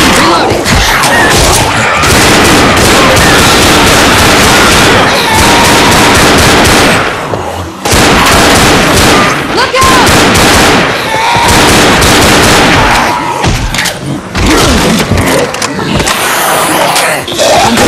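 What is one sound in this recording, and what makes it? Gunshots fire rapidly in loud bursts.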